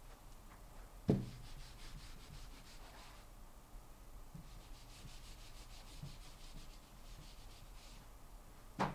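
An eraser rubs on a whiteboard.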